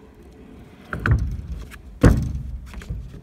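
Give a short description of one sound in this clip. A scooter deck knocks hard against the ground.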